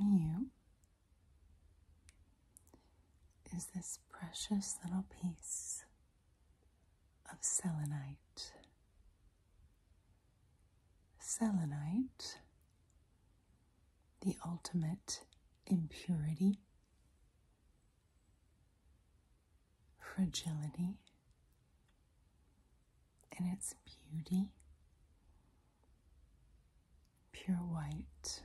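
Fingers tap and rub against a crystal block.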